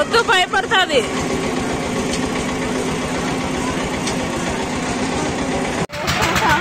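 A fairground ride's machinery hums steadily.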